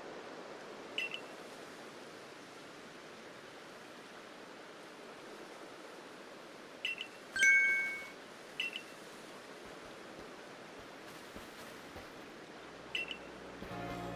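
Short electronic blips sound now and then.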